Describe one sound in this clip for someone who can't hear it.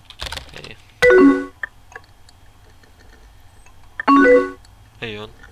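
A computer instant message alert chimes twice.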